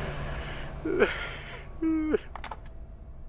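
A phone handset is set down onto its base with a plastic clunk.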